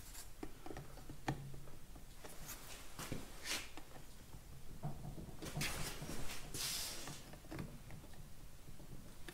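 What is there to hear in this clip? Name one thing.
Small metal parts clink and scrape.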